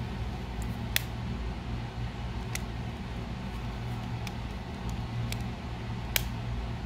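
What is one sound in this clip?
A small screwdriver clicks and scrapes against a plastic case.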